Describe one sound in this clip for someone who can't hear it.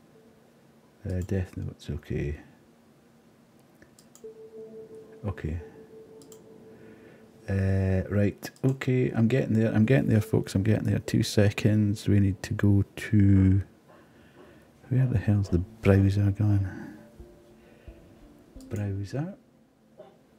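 A middle-aged man talks calmly into a close microphone.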